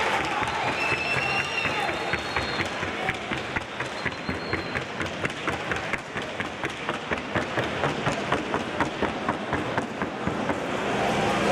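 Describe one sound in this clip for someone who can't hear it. A horse's hooves beat a quick, even rhythm on the ground.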